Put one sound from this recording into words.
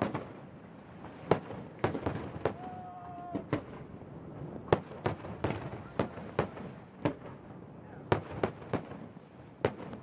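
Fireworks bang and crackle in the open air, with sharp booms echoing every second or so.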